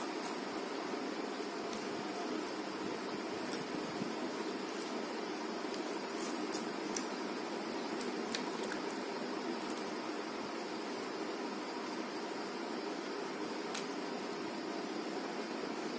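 A woman chews food with wet mouth sounds, close to a microphone.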